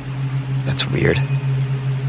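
A young man mutters quietly to himself.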